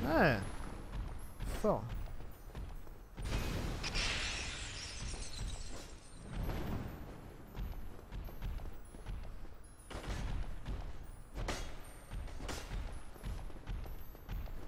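A sword swings and strikes with sharp metallic hits.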